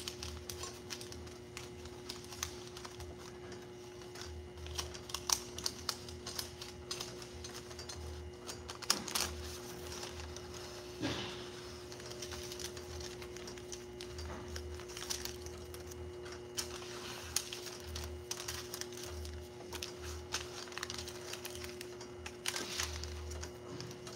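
Metal parts click and clatter.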